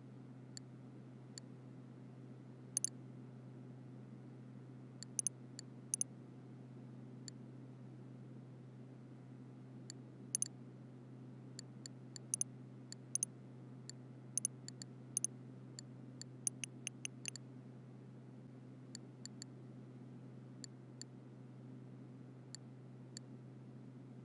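Short, sharp menu clicks sound now and then.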